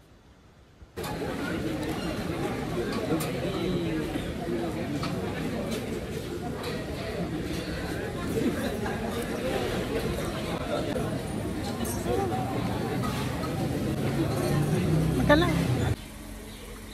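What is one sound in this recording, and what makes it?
A crowd of diners chatters.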